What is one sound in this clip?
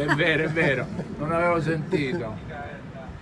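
An elderly man laughs heartily close by.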